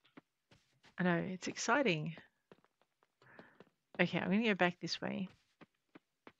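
A woman talks with animation into a microphone.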